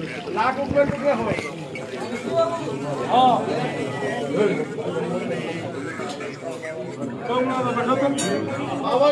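A group of adults chant and sing together nearby.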